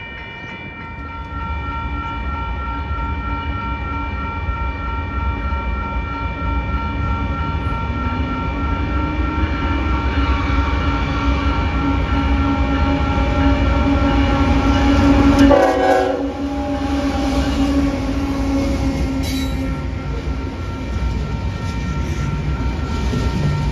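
A diesel freight train rumbles closer and passes nearby.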